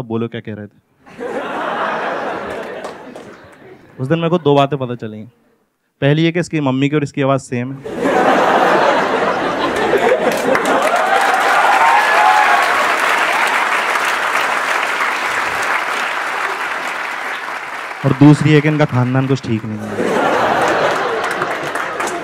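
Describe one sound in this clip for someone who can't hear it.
An audience laughs loudly in a large hall.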